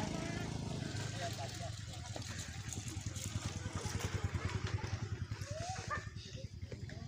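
A motorbike engine rumbles close by and fades as it passes.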